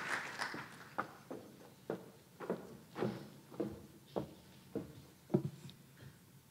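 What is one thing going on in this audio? Footsteps knock across a stage.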